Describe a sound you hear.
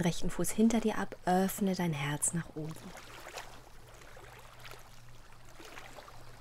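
Small waves lap gently against a shore.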